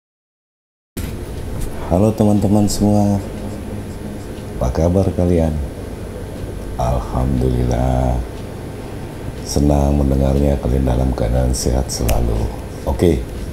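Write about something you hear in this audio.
A middle-aged man talks with animation close to a microphone.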